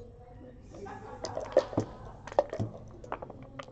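Dice rattle and clatter onto a board.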